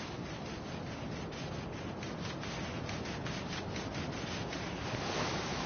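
Fast footsteps run over sand.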